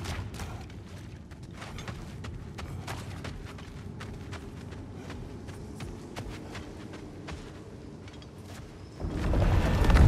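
Heavy footsteps crunch on gravel and dirt.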